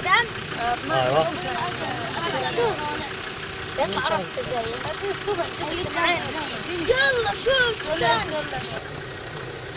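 Boys talk and shout excitedly close by.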